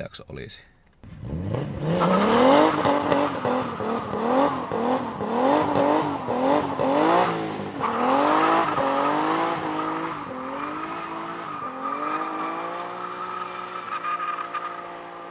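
A car engine revs hard, again and again, close by.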